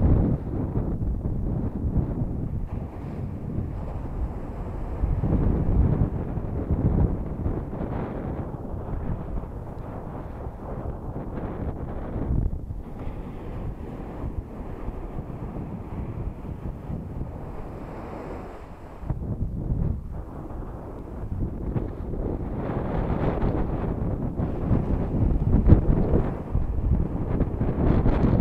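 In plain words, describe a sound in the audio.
Waves break and wash up onto a beach.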